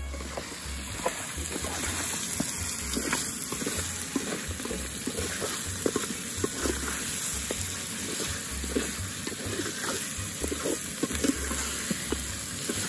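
A spoon scrapes and clinks against a metal pot while stirring a thick stew.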